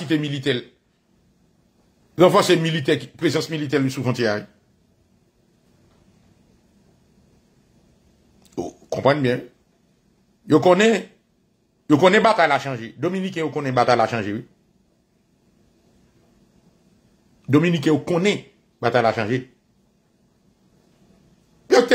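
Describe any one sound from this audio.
A man speaks calmly and close up, in short phrases with pauses between them.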